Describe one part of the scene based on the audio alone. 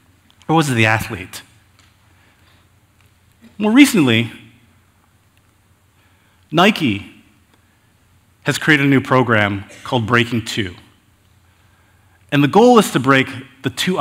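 A man speaks calmly and expressively through a headset microphone, in short phrases with pauses.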